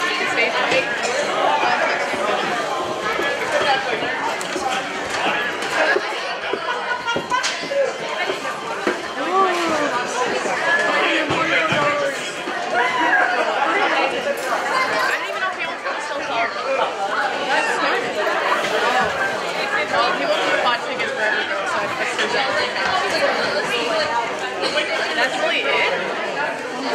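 A crowd of men and women chatters loudly all around in a large echoing hall.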